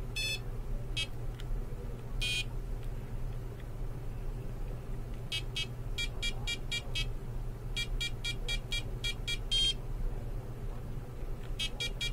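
A handheld LCD game gives off bursts of short, high electronic beeps.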